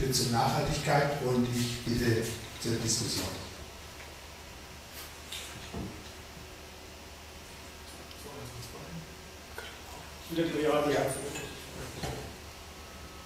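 An elderly man speaks calmly through a microphone, with pauses between phrases.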